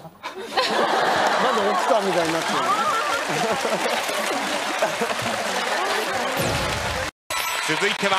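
A group of young men and women laugh loudly together.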